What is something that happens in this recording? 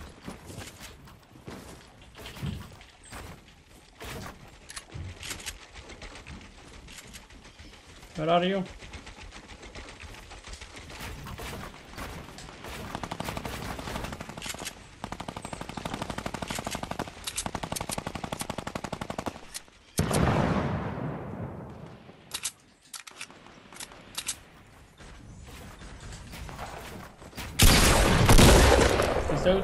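Footsteps thud on wooden ramps.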